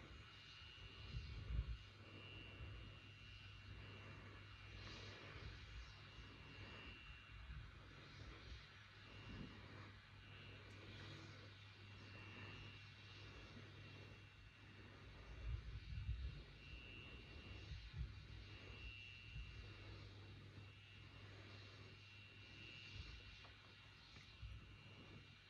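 A rocket engine rumbles faintly through a loudspeaker.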